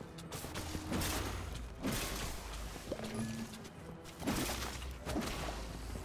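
Magic blasts burst with crackling bangs.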